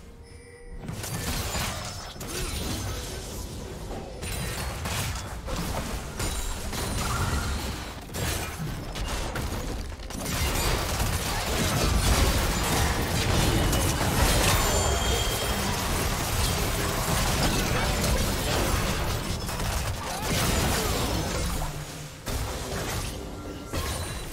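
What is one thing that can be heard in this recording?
Game spells and attacks crackle and boom in a fight.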